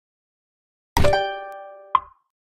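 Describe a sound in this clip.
A game tile snaps into place with a ringing chime.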